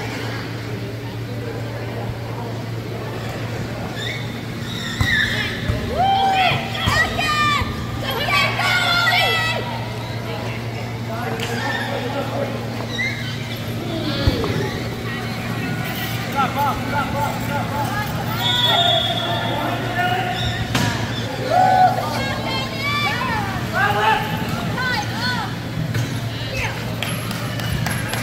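Electric wheelchair motors whir as players drive around.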